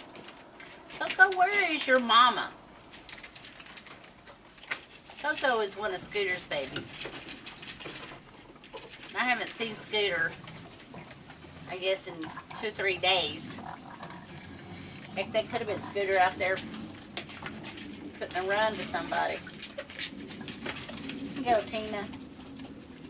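A woman talks warmly and playfully nearby.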